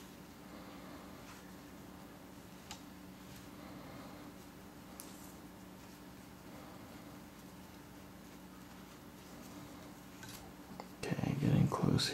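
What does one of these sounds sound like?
Cord rustles and rubs softly as hands braid it.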